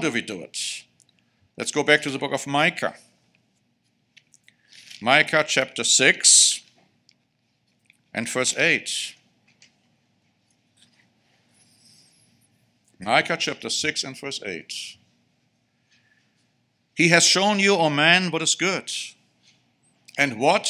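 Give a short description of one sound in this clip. A middle-aged man speaks with emphasis into a microphone, in short bursts with pauses.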